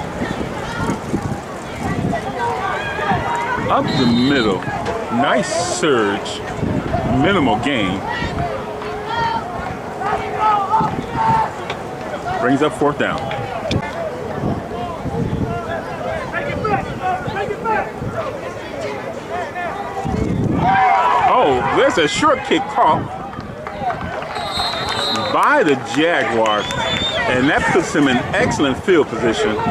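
Young men talk and shout nearby.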